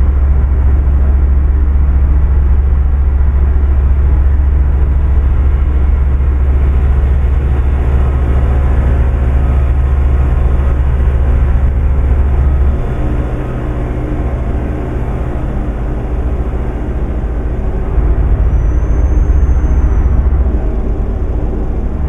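A truck engine drones steadily, with a deep rumble.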